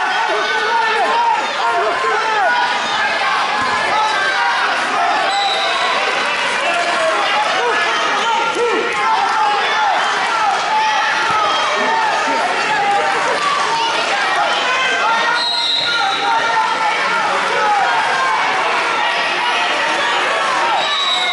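A crowd of many voices chatters and echoes throughout a large hall.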